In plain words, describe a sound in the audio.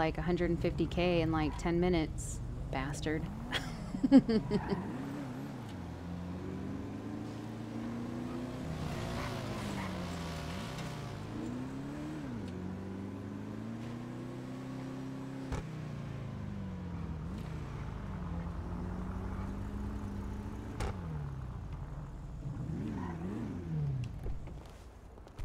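A car engine hums and revs, rising and falling in pitch.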